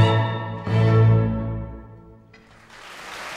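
A woman sings in a powerful operatic voice.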